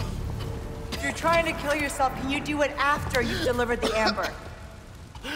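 A woman speaks coolly and mockingly.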